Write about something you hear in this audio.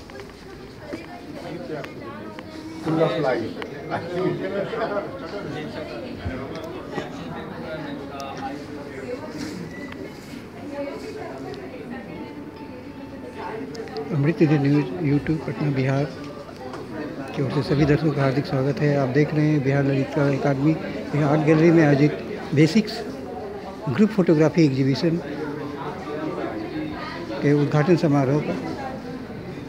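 A crowd of people murmurs and chatters in the background.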